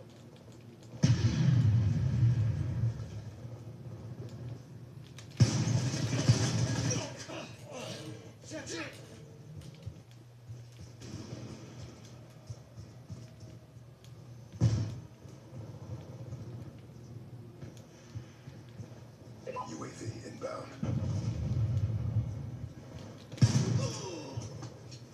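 Gunfire from a video game bursts loudly through a television speaker.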